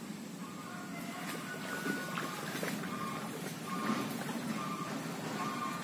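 Water splashes around a man wading through a stream.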